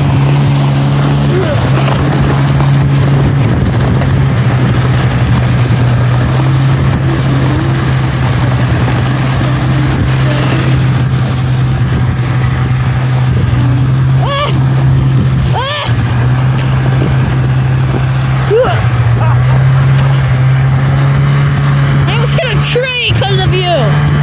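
An engine hums steadily close by.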